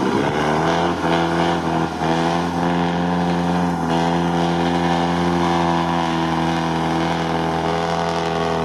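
Tyres churn and splash through mud and water.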